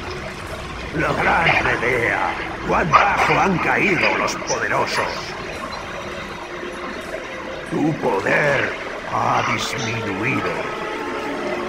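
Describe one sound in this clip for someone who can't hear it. A man speaks slowly in a deep, menacing voice.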